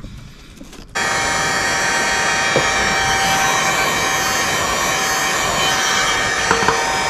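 A power drill whirs steadily at close range.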